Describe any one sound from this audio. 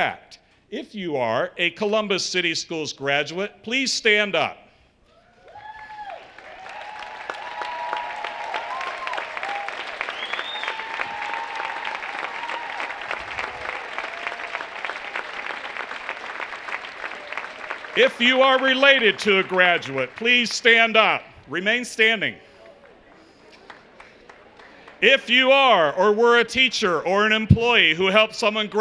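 A middle-aged man speaks with animation through a microphone in a large hall.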